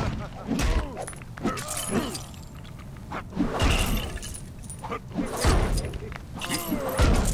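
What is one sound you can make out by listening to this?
Punches and blows land with thuds in a game fight.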